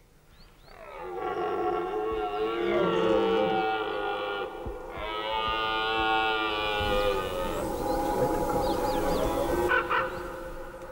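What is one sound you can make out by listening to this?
A red deer stag bellows loudly in long, deep roars.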